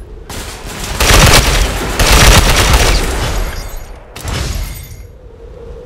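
Rifle shots crack loudly in quick bursts.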